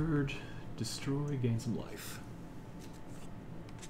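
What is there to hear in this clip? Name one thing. Playing cards rustle and slide as they are handled.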